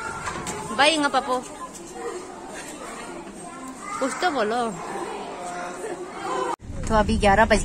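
Young children chatter nearby.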